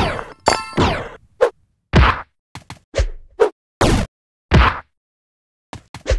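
Short electronic game sound effects burst out again and again.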